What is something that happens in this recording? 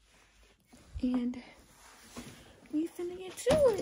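A young woman hums softly close by.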